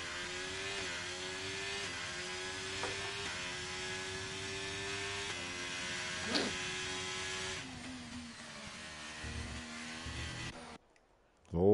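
A racing car engine whines at high revs, shifting gears as it speeds along.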